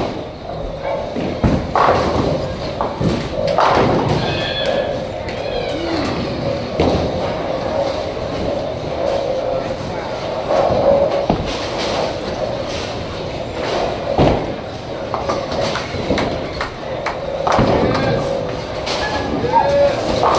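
Pins crash and balls roll in a busy, echoing hall.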